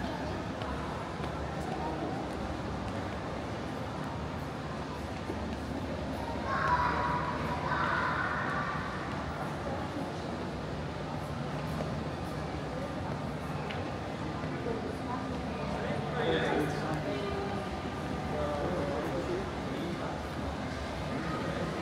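Distant voices murmur faintly in a large echoing hall.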